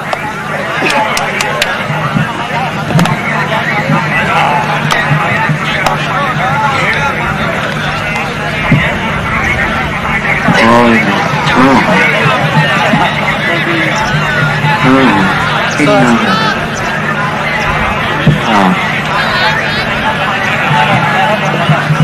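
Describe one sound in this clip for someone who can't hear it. A large outdoor crowd chatters and calls out steadily.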